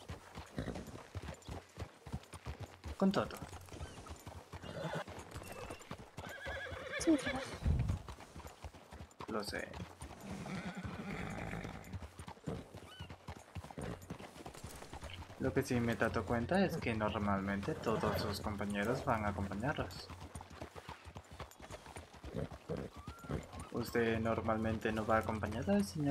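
Horses' hooves clop slowly on a dirt road.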